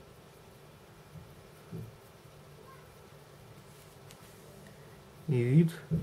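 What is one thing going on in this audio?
A small brush taps and dabs softly against a plastic model.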